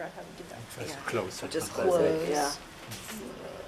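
A man and a woman talk quietly nearby.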